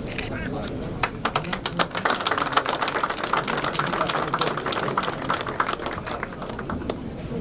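A crowd applauds loudly outdoors.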